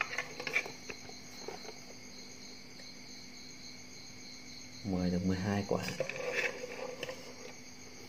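Eggs clink softly against a metal pot.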